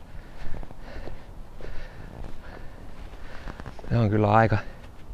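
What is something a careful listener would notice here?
Footsteps crunch softly on a forest floor.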